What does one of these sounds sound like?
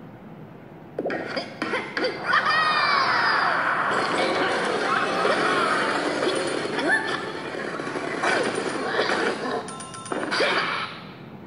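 Upbeat game music plays from a small phone speaker.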